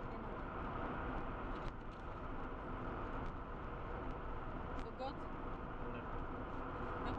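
A car engine hums steadily with road noise inside the cabin.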